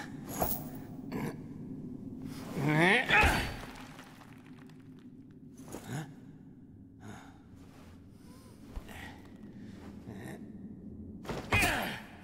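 A heavy chain rattles.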